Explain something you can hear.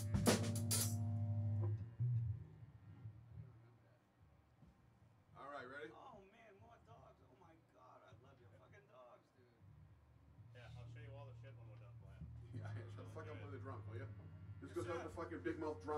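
An electric bass guitar plays deep notes.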